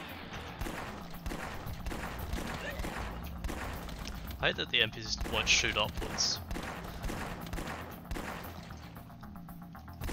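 Weapons thud and strike in a close brawl.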